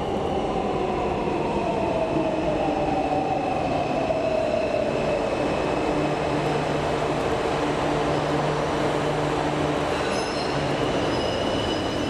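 A metro train rumbles into the station and slows down.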